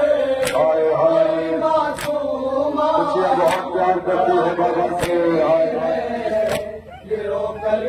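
A group of men chant loudly together through a loudspeaker.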